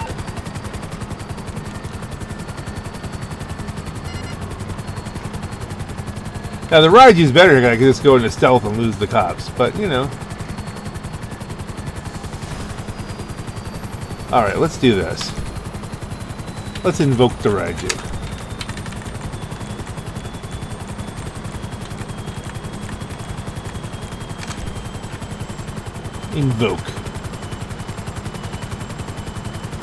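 A helicopter's rotor chops steadily.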